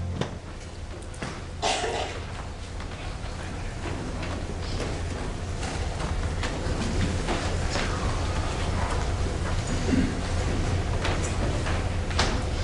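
A piano plays softly in an echoing hall.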